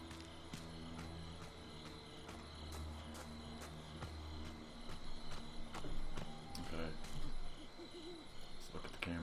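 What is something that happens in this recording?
Footsteps crunch on leaves and dirt at a steady run.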